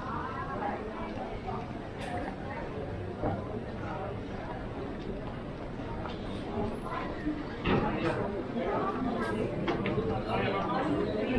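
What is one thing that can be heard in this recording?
A crowd murmurs along a busy street outdoors.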